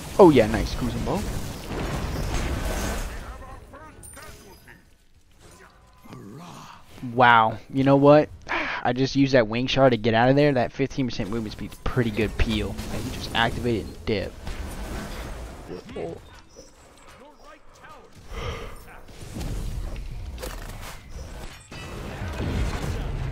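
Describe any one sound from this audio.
Game spells whoosh and crackle with sharp impacts.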